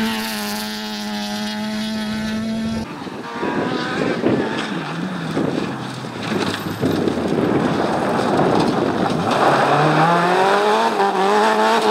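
Tyres skid and spray gravel on a dirt track.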